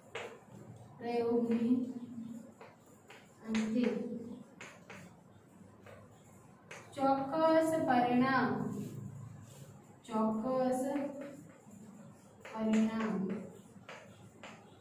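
A woman speaks slowly and clearly, as if teaching, nearby.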